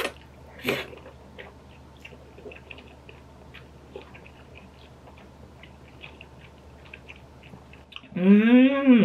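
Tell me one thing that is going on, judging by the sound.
A young woman chews softly.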